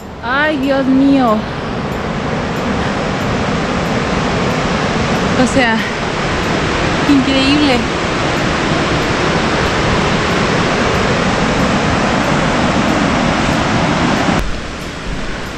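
A river rushes over rapids below, in a steady roar.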